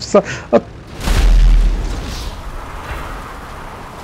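An explosion booms loudly, then rumbles away.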